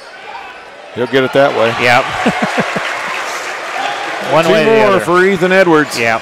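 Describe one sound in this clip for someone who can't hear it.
A crowd cheers loudly after a basket.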